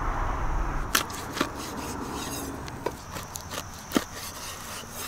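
A cleaver chops through meat and bone on a wooden board with sharp thuds.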